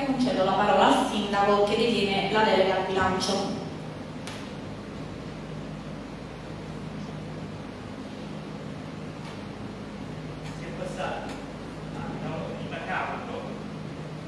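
A man speaks into a microphone in a large echoing hall.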